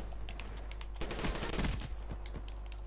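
An automatic rifle fires a quick burst of shots.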